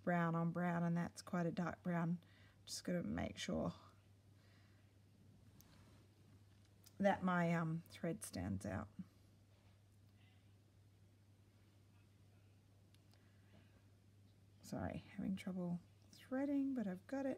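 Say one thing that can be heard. A needle and thread pull through fabric with a soft rustle.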